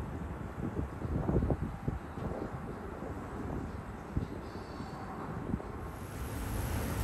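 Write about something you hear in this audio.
A train approaches slowly on the tracks.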